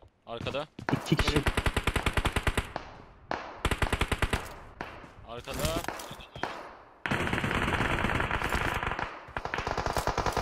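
Rapid gunfire bursts in quick volleys.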